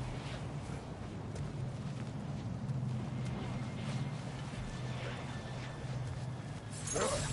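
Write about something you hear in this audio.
Footsteps crunch softly through undergrowth.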